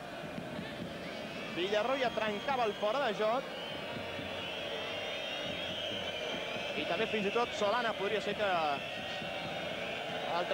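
A large crowd roars and murmurs steadily in a stadium.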